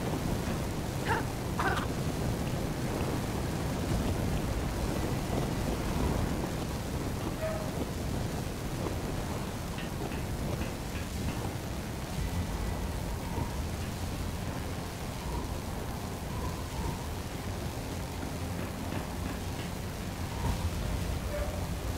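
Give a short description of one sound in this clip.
A flame torch hisses and crackles as it cuts through metal.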